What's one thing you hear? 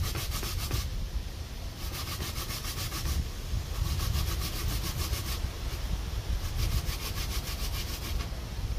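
A metal pot is scrubbed and scraped in a basin of water.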